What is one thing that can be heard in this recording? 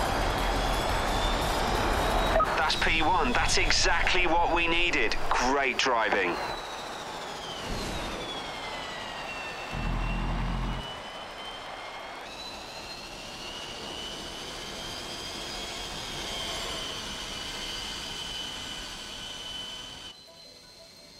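An electric race car whines at speed.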